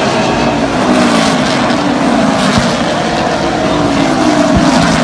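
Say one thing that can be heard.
Race car engines roar loudly and close by.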